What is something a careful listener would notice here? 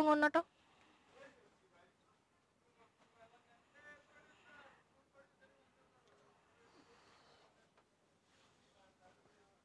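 Fabric rustles as it is unfolded and shaken out.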